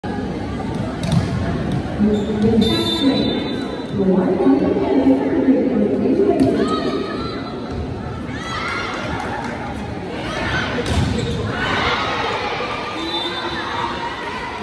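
A crowd chatters and cheers throughout a large echoing hall.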